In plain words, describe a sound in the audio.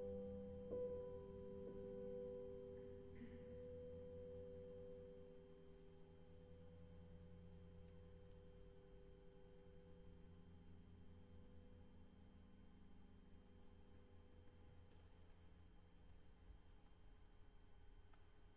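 A piano plays soft chords that ring out and slowly fade.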